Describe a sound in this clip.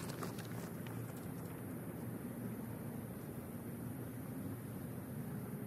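Footsteps brush through grass and fade as a person walks away.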